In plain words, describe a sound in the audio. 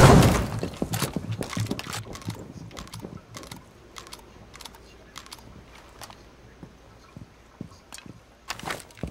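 Footsteps crunch over debris.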